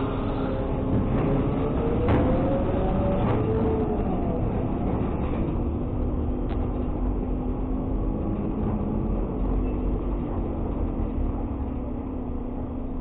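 A truck engine revs up and down as the truck drives out.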